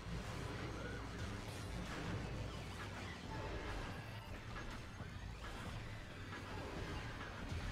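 Video game weapons fire and blast repeatedly.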